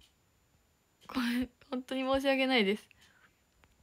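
A young woman speaks close to a microphone in a high, sing-song voice.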